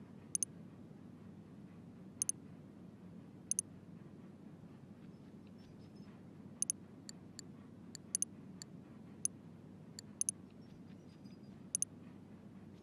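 Short, bright menu clicks chime again and again.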